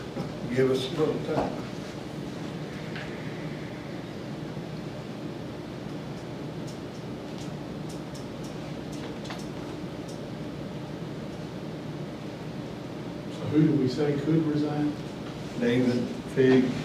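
A man speaks calmly at a distance.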